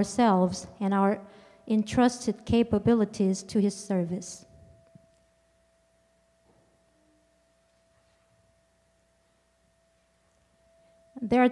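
A woman sings through a microphone in an echoing hall.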